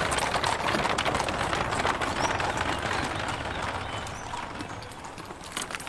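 Several people walk slowly over stone.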